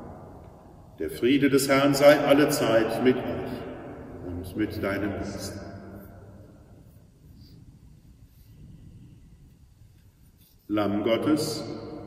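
A middle-aged man chants aloud in a large echoing hall.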